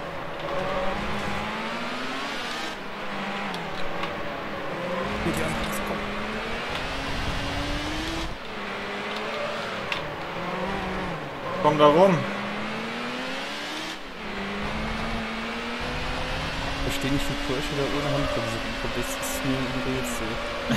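A racing car engine roars and rises in pitch as gears shift.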